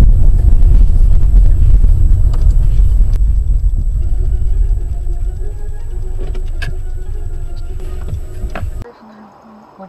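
Road noise rumbles inside a moving car.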